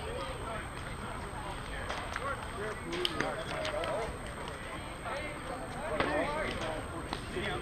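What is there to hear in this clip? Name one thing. Several men call out and chatter across an open field.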